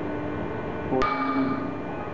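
A steel bolt snaps with a sudden sharp crack under load.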